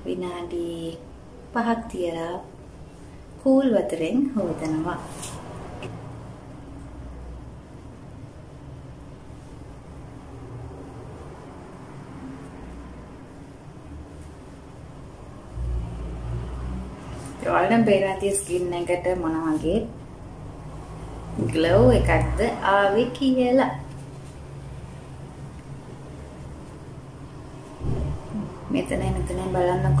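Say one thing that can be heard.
A young woman talks calmly and closely into a microphone.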